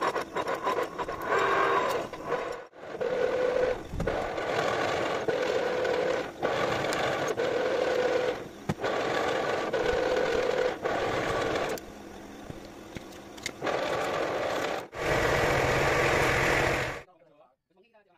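A lathe motor whirs loudly.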